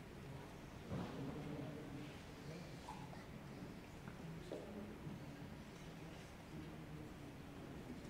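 An orchestra starts playing softly.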